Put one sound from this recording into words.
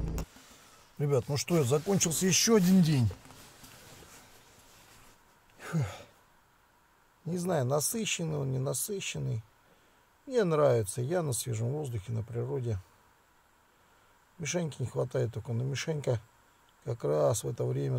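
A man speaks drowsily and close by, in short bursts.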